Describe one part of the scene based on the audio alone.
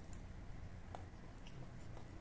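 A man chews food loudly close by.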